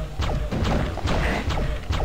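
A fireball explodes with a loud boom.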